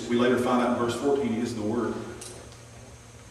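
A middle-aged man preaches with emphasis through a microphone in a room with a slight echo.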